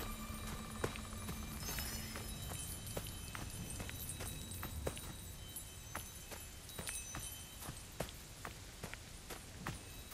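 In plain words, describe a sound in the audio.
Footsteps run quickly over wooden boards and then grass.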